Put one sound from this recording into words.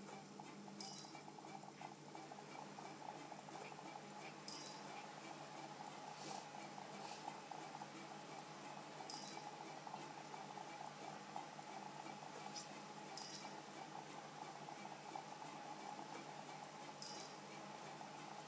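A handheld game console plays a short, high chime every few seconds.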